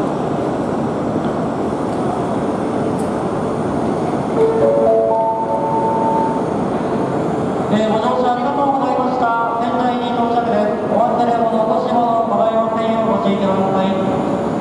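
A crowd of people murmurs and shuffles along, in a large echoing hall.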